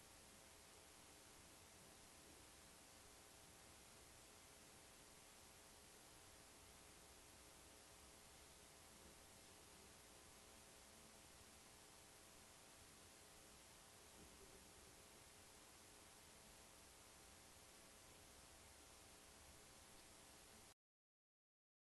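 A projector hums steadily.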